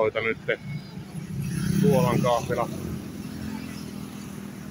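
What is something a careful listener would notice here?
A motorbike passes close by.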